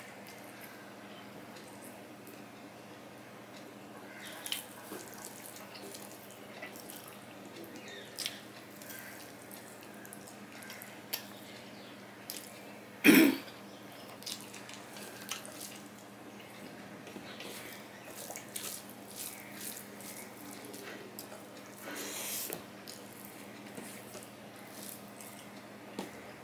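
Fingers squish and mix rice on a metal plate.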